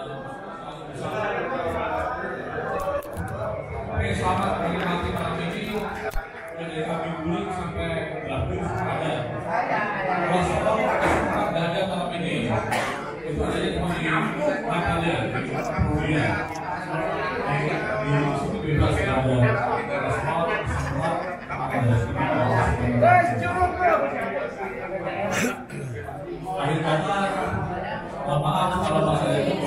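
A crowd of men chatters loudly in a large echoing hall.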